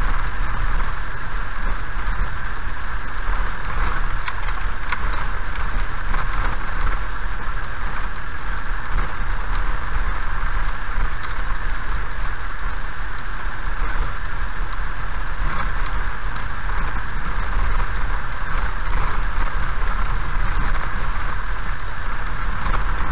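Rain patters on a windscreen.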